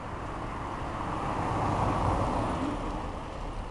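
A bicycle rolls past over dry leaves.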